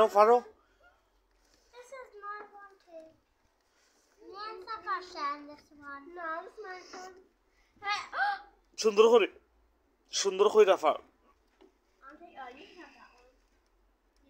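Young children talk and chatter nearby.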